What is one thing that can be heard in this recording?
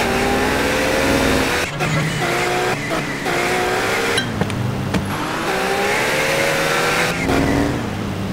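A car engine hums and revs as a taxi drives along a street.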